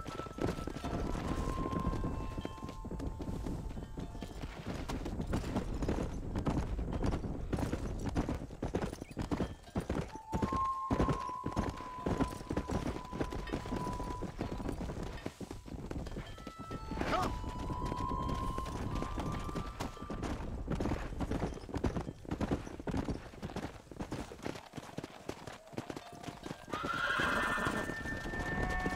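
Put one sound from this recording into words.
A horse gallops steadily, hooves thudding on a dirt path.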